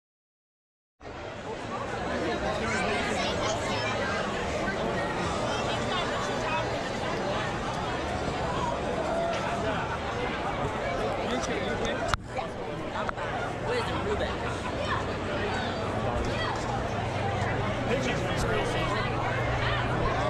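A large crowd chatters and murmurs all around outdoors.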